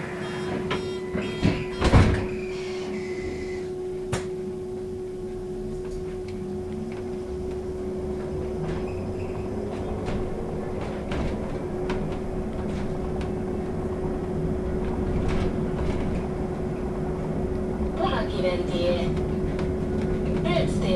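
Tyres rumble on asphalt beneath a bus as it picks up speed.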